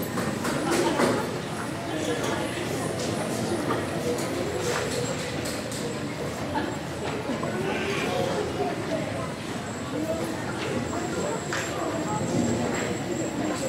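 Children chatter and play.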